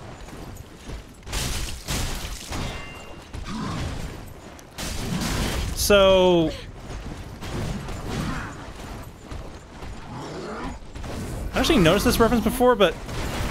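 Armour clanks with heavy footsteps in snow.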